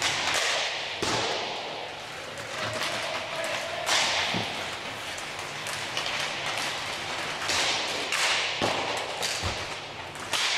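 Hockey sticks clack against a ball and the floor, echoing in a large hall.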